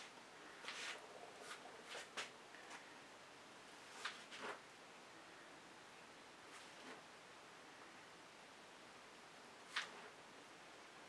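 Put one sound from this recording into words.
A wide brush swipes across a wet painted canvas.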